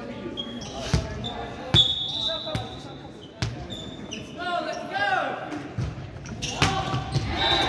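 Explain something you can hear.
A volleyball is struck with sharp smacks that echo through a large hall.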